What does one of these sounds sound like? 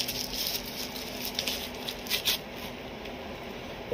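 Plastic bubble wrap crinkles and rustles.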